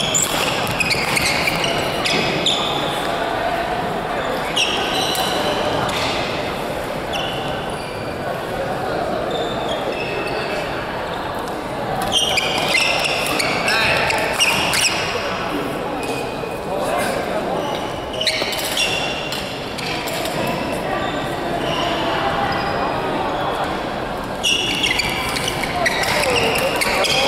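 Badminton rackets hit a shuttlecock back and forth in a large echoing hall.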